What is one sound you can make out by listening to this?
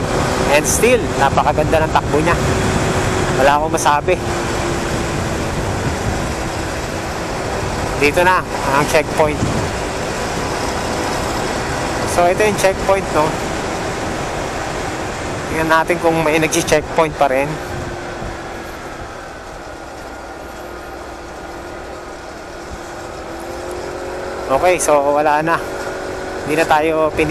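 A motorcycle engine drones steadily, easing off for a while and then picking up again.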